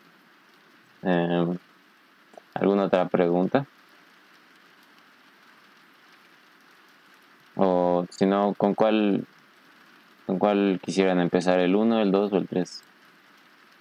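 A young man speaks calmly through an online call, in short bursts.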